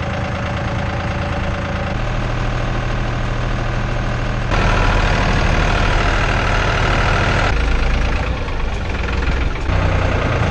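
A tractor engine rumbles steadily from inside the cab, changing pitch as it speeds up and slows down.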